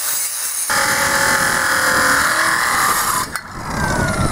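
An angle grinder cuts through steel with a loud, high whine.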